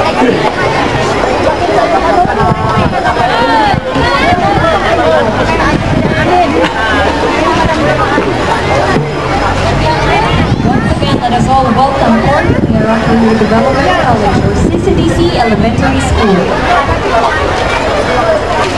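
A crowd of people chatters and calls out close by, outdoors.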